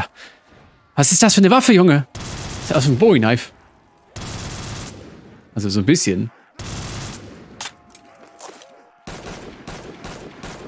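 Gunfire from a game rattles in bursts.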